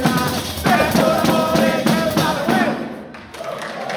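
Men sing together loudly.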